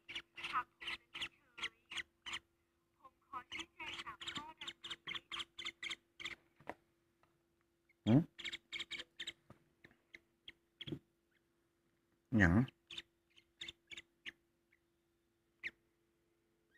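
A small parrot chirps and squawks rapidly close by.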